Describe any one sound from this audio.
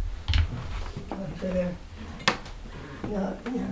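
A wooden door clicks and creaks open.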